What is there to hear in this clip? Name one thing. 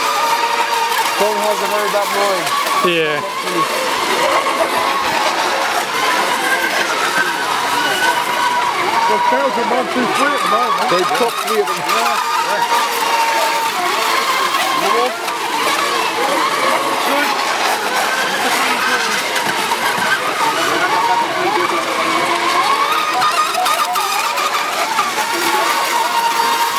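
Several small racing boat motors whine at a high pitch, rising and falling as the boats speed across water.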